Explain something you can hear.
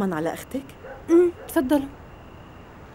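A young woman answers softly nearby.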